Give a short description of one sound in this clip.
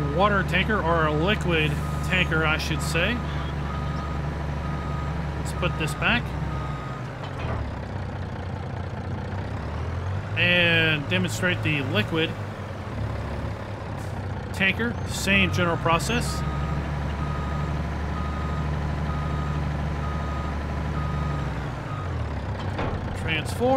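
A heavy truck engine hums steadily.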